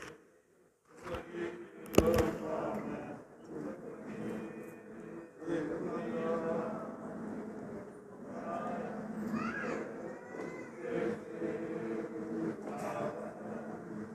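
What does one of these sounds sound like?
A crowd of men and women recite a prayer together in a room with some echo.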